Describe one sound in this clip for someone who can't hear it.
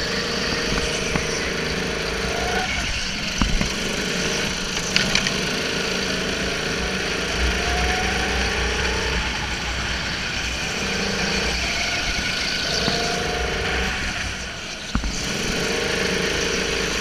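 Other go-kart engines buzz nearby.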